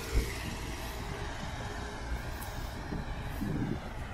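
A small truck drives along the road nearby.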